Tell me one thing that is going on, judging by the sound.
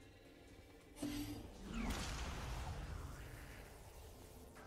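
A magic staff fires an icy blast with a loud whoosh.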